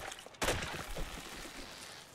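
A pickaxe strikes wood with a dull thud.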